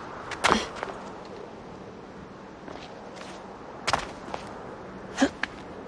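Footsteps thud on rock.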